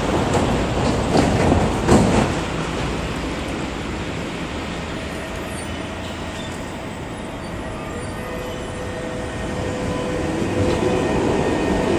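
A tram approaches slowly and rolls past with a low hum.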